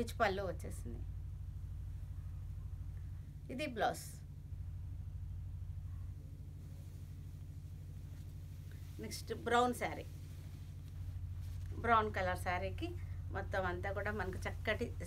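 A middle-aged woman speaks calmly and warmly, close by.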